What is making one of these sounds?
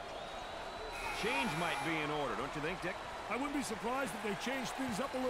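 Basketball shoes squeak sharply on a wooden court.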